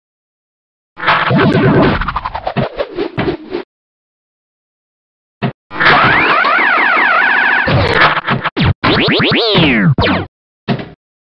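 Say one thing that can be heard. Electronic tones sweep up and down in a game's bonus sounds.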